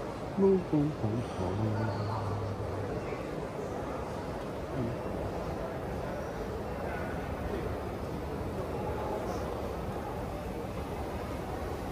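An escalator hums steadily as it runs.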